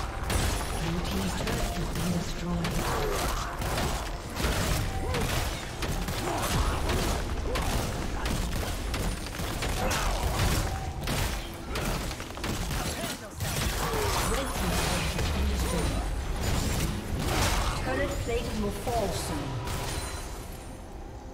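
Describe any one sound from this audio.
Game spell effects crackle and burst rapidly during a fight.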